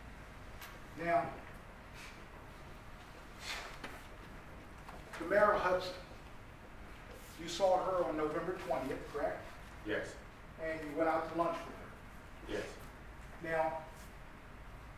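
A man speaks calmly in short phrases through a microphone.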